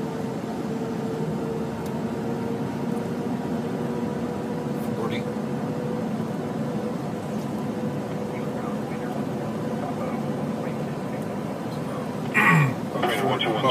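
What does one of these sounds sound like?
A small plane's propeller engine drones steadily nearby.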